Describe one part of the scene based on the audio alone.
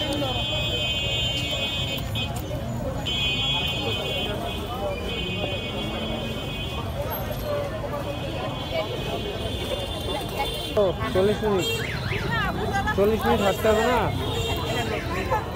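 A busy crowd chatters in the background outdoors.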